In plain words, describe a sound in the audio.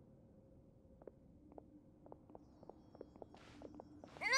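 Footsteps tap lightly on stone.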